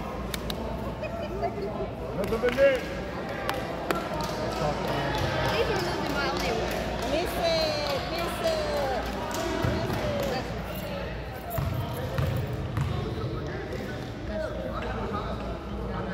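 Spectators nearby talk and call out with animation.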